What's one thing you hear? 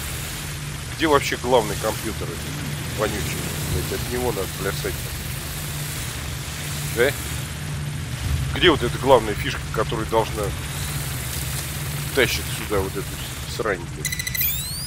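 A man talks casually into a microphone, close by.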